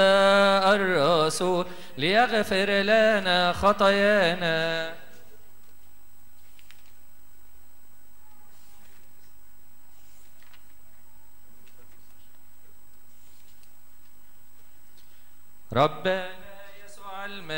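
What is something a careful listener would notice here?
An elderly man chants a prayer into a microphone in a slow, melodic voice.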